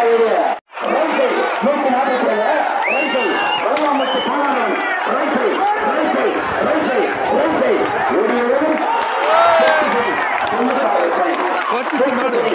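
A large outdoor crowd of young men shouts and cheers excitedly close by.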